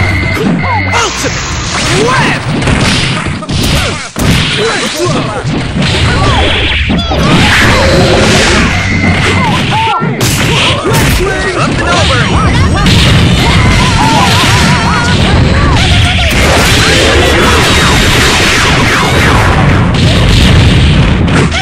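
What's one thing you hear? Punches, blasts and explosions crash in rapid bursts.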